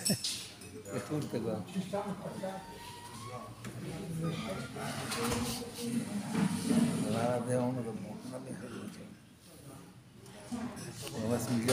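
Elderly men talk casually nearby.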